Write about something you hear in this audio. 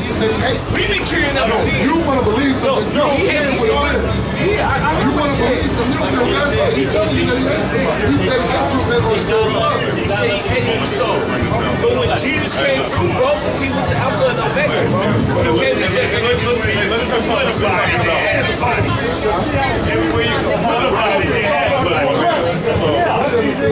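A man speaks loudly with animation close by.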